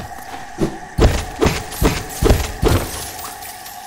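A blade slashes with quick, sharp swishing hits.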